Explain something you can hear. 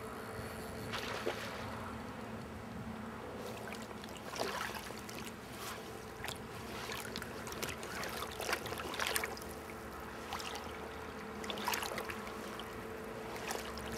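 Water splashes as a hooked fish thrashes close by.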